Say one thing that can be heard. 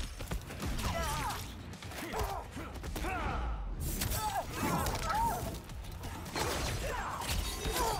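Punches and kicks land with sharp thuds and cracks.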